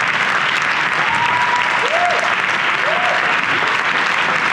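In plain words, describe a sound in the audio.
Young performers' voices carry faintly across a large hall.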